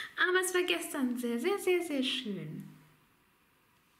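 A young woman speaks cheerfully, close to the microphone.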